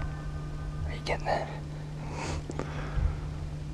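A man whispers quietly close by.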